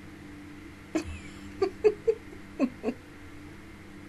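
A young woman laughs close to a microphone in short bursts.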